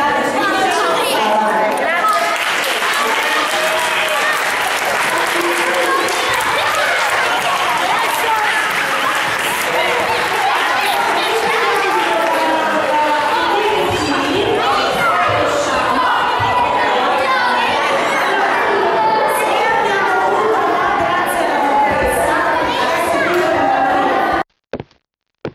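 A crowd of children shout and cheer excitedly.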